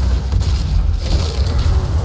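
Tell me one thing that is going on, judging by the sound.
A monster is torn apart with a wet, squelching crunch.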